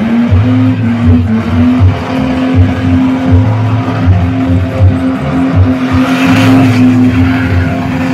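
A four-cylinder drift car revs hard, bouncing off the rev limiter.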